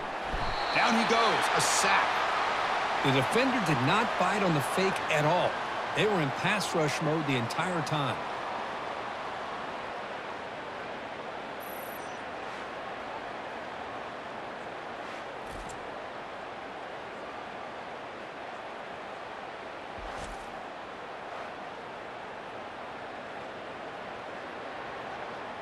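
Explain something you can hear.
A large stadium crowd cheers and roars steadily in the distance.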